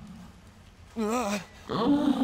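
A young man screams in alarm.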